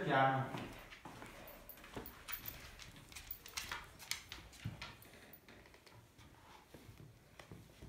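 Fabric rustles and shuffles close by.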